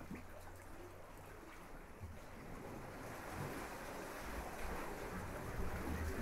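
Wind rustles palm fronds.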